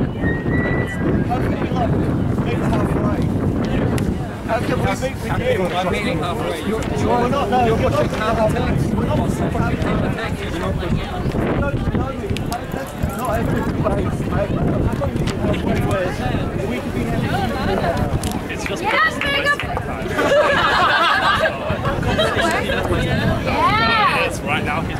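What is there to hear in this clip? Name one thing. A crowd of men and women talks and chants loudly outdoors.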